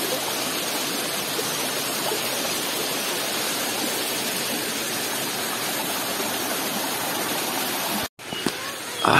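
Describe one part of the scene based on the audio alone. A waterfall rushes and splashes over rocks.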